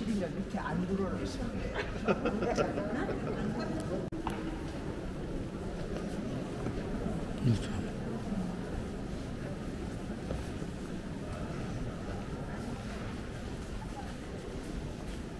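Footsteps shuffle and tap on a stone floor.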